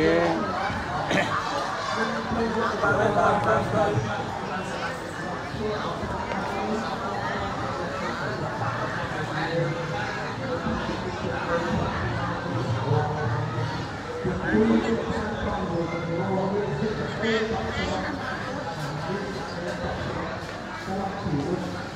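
A group of men murmur and chant together nearby.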